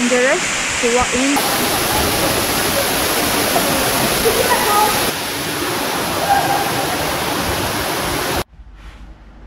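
A waterfall roars steadily.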